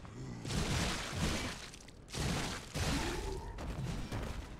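Blades swing and strike in a fierce fight.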